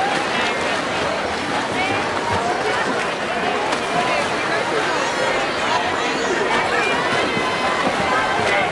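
Swimmers splash through water.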